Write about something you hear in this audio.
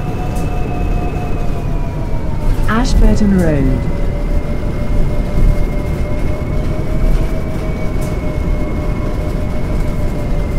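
A bus engine hums steadily with a low whine.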